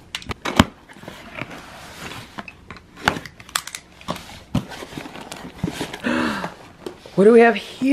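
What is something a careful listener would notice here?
Cardboard flaps scrape and thump as a box is opened by hand.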